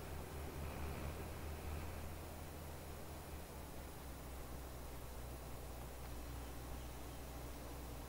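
Grain pours from an unloading auger into a trailer.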